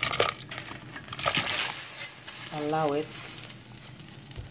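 Pieces of meat splash into a pot of water.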